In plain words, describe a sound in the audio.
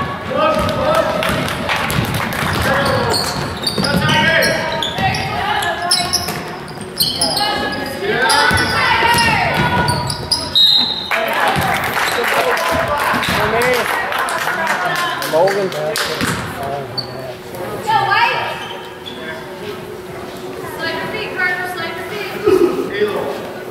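Spectators talk and shout with animation in a large echoing gym.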